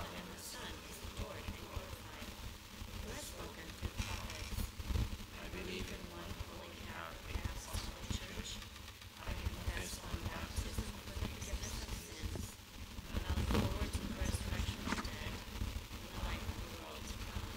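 A crowd murmurs and shuffles in a large echoing hall.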